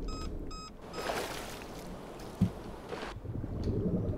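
Water splashes loudly as a swimmer dives under the surface.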